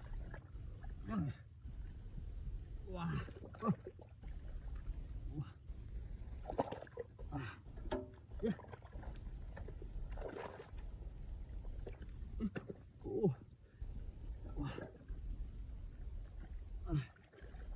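A young man grunts and strains with effort close by.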